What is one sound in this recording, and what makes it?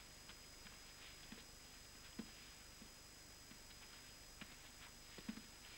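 Footsteps pad softly on a carpeted floor.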